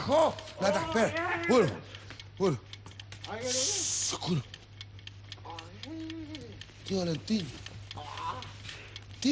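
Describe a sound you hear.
A man wails and groans loudly close by.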